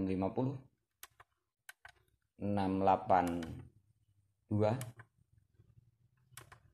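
Small buttons click as they are pressed.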